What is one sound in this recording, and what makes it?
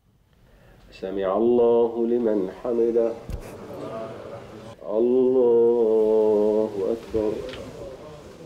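A man chants a prayer in a melodic voice.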